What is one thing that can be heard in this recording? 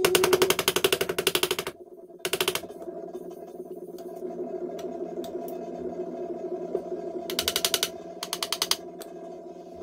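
A file rasps quickly back and forth on metal frets, in short bursts.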